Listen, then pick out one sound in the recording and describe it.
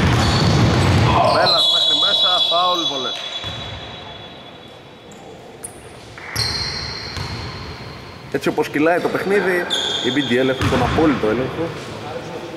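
Young men shout to each other across the hall.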